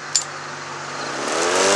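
An electric lawn mower motor starts up and whirs louder.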